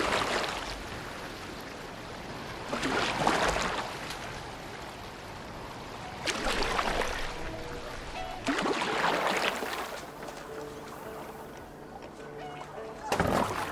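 Water laps gently against a wooden boat.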